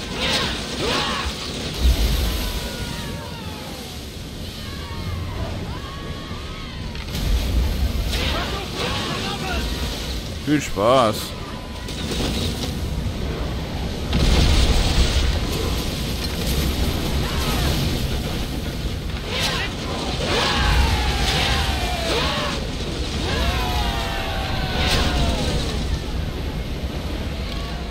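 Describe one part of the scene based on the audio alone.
Waves splash and rush against a ship's hull.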